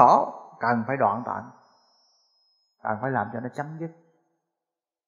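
A middle-aged man speaks calmly and slowly, close by, in short phrases with pauses.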